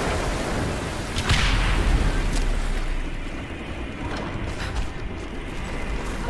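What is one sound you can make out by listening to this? Flames crackle and burn.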